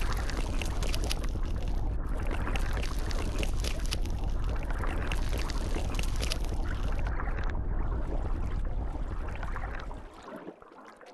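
Deep underwater rumbling fills the space.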